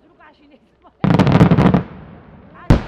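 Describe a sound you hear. Fireworks crackle in a rapid burst.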